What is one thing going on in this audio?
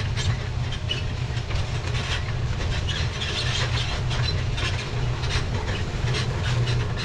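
A toolbar's knives drag and rattle through dry soil and stubble.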